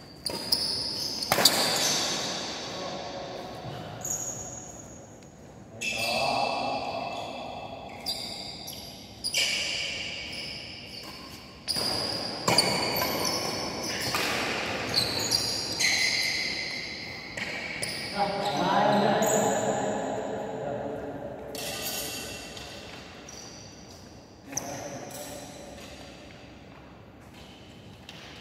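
Rackets strike a shuttlecock with sharp pops that ring out in a large echoing hall.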